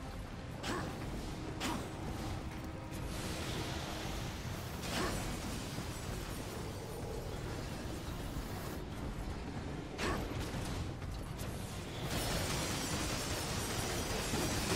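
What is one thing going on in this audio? Sword blows strike with sharp whooshes and clangs.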